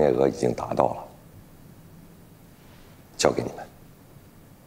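A middle-aged man speaks firmly close by.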